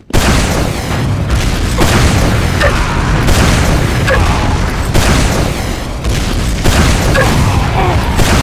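Explosions boom with deep rumbling blasts.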